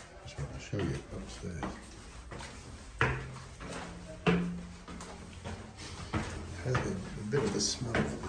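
Footsteps climb tiled stairs.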